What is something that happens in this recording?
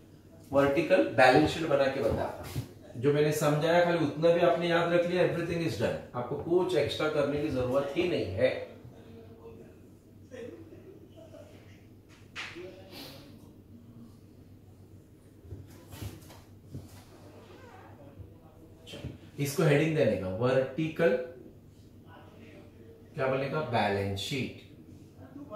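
A man speaks calmly and clearly, as if explaining, close by in a room.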